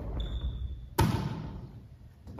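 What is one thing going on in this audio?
A ball slaps into a player's hands, ringing through an echoing hall.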